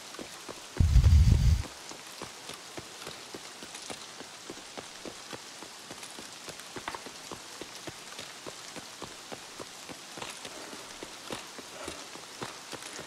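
Footsteps crunch steadily on hard ground.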